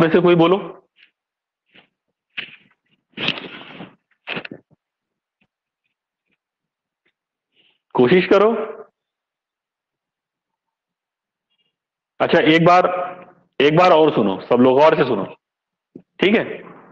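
A middle-aged man speaks calmly and close to a microphone, in bursts with pauses.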